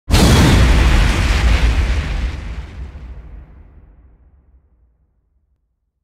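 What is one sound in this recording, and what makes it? A fiery blast roars out and slowly fades away.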